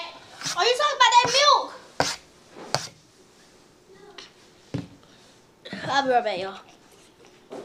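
A young child squeals and sings loudly close by.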